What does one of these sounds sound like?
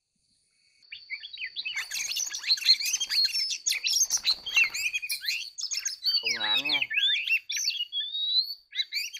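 An oriental magpie-robin sings in rapid, varied phrases.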